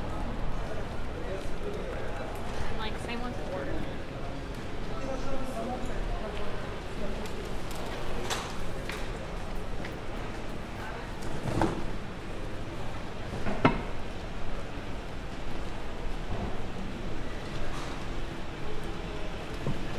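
Footsteps of passers-by tap on pavement.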